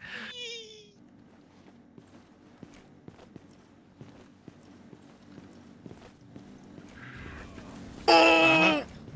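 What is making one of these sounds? Footsteps thud steadily on wooden boards.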